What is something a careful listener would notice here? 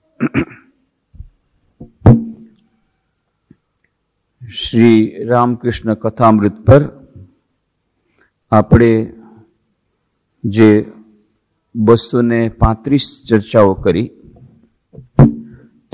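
A man speaks calmly and clearly into a microphone, close by.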